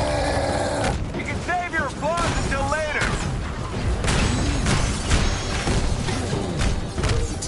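Low rumbling booms and explosions fill the fight.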